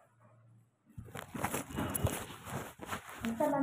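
A plastic chair scrapes across a hard floor.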